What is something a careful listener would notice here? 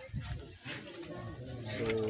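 A cardboard box rustles in a hand.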